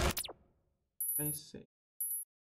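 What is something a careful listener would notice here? Short electronic menu tones beep.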